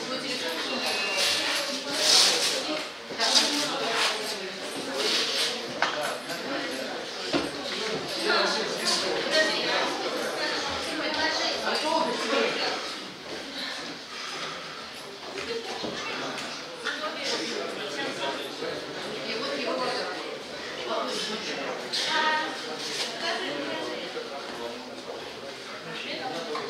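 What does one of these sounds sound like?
Spectators chatter in a large echoing hall.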